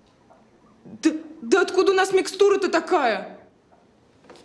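A young woman answers hesitantly, close by.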